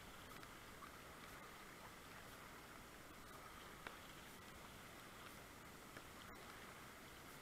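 A paddle splashes in the water.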